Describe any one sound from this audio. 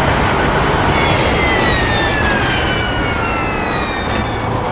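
A race car engine drops steadily in pitch as the car slows.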